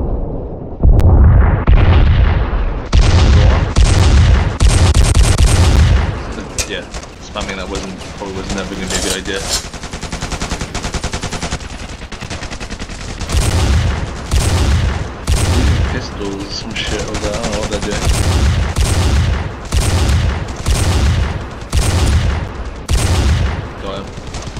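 A sniper rifle fires loud, booming shots.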